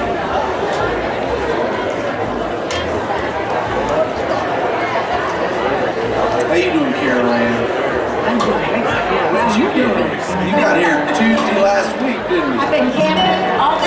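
A live band plays upbeat music through loudspeakers.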